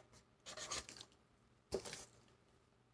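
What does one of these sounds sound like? A cardboard box scrapes and rustles as it is handled.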